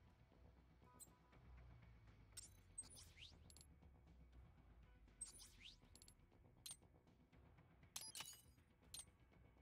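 Short electronic menu beeps and clicks sound every few seconds.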